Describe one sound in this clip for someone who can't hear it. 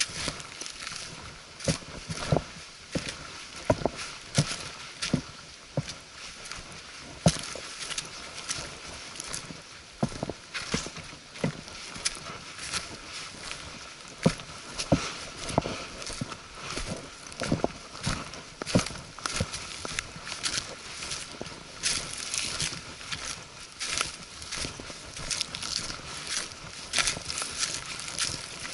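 A walking pole taps against the ground.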